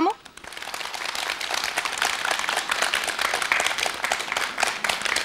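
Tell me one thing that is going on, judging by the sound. A group of people clap their hands in quick, rising applause.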